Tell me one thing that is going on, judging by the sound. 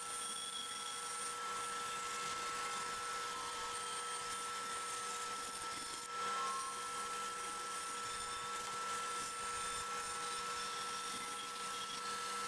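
A band saw hums steadily as it cuts through wood.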